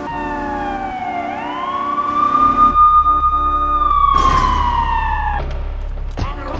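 A police siren wails and rises, then falls.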